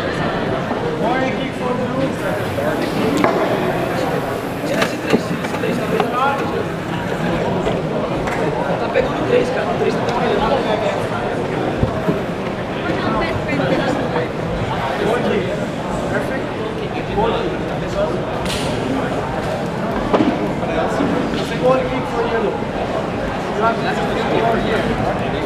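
A crowd of people chatters and murmurs in a large hall.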